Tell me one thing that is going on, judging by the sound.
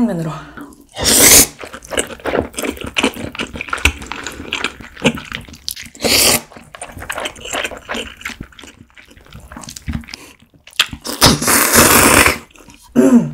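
A young woman slurps noodles loudly and close up.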